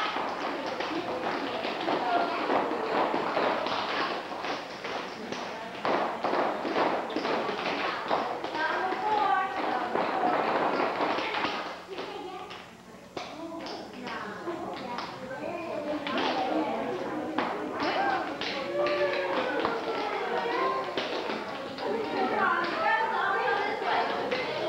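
Tap shoes click and stamp on a wooden floor.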